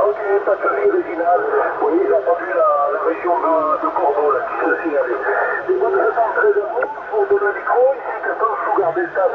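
A voice talks through a radio speaker, thin and crackly.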